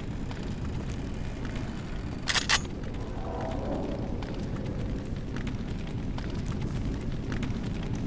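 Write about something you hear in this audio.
A fire roars and crackles steadily.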